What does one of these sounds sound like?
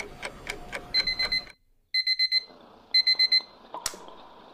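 A timer beeps in short bursts.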